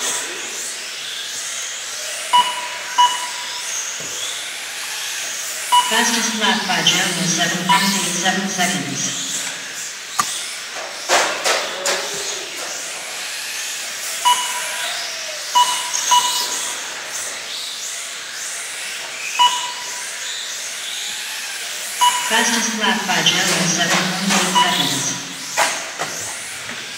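Small electric motors of toy race cars whine and rev up and down in a large echoing hall.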